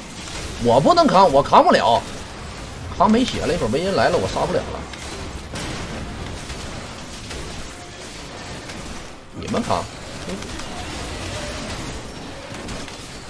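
Game sound effects of spells and attacks play steadily.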